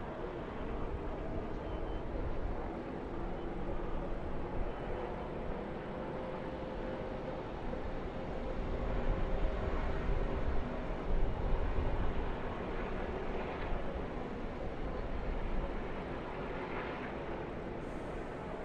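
A pack of race car engines roars steadily in the distance.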